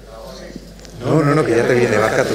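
A man speaks with animation into a microphone, loud and close.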